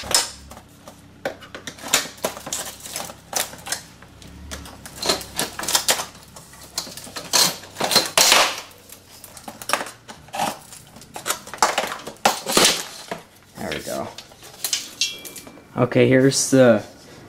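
Metal trim strips scrape and clatter as they are pried off a panel.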